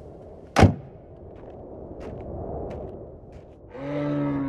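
Footsteps tread on hard ground outdoors.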